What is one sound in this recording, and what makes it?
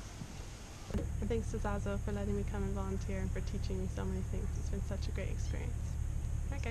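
A young woman speaks cheerfully and close to a microphone.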